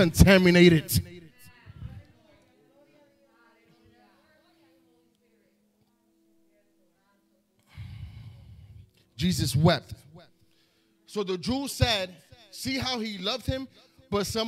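A man speaks with emphasis into a microphone, heard through loudspeakers in an echoing room.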